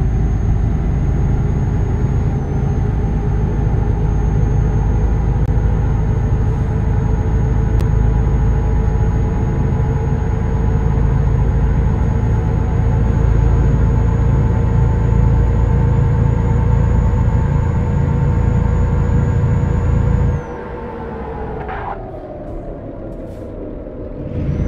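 A truck engine drones steadily, then slows and winds down.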